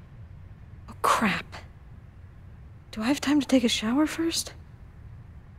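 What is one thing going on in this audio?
A young woman speaks quietly, close by.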